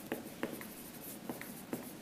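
A marker squeaks on a whiteboard.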